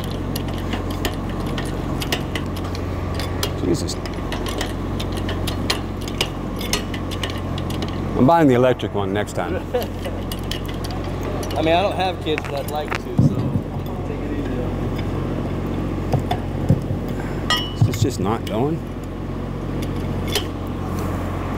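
A hoist's hand crank clicks as it ratchets.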